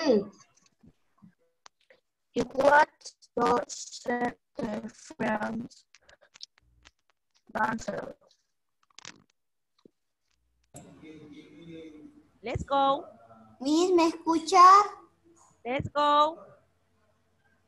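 A woman speaks clearly over an online call, in short phrases with pauses.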